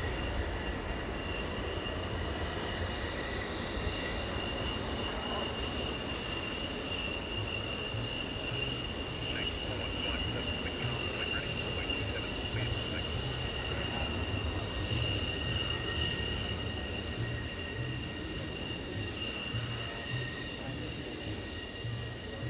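A jet engine whines steadily as a plane taxis nearby.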